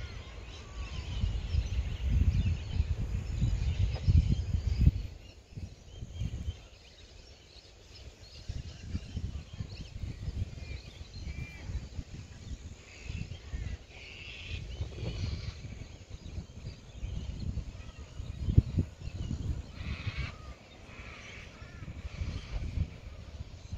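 Wind gusts blow outdoors.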